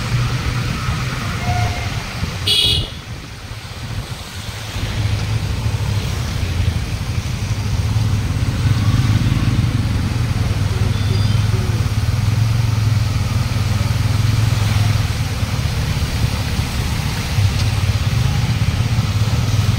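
A motorbike engine hums steadily up close.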